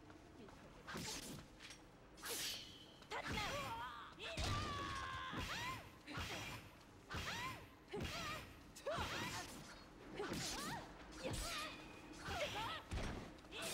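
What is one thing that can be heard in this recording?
Blades clash and strike with sharp metallic hits.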